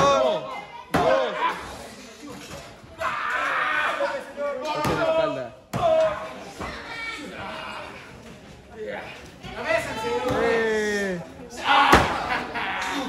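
Bodies thud heavily on a wrestling ring's canvas.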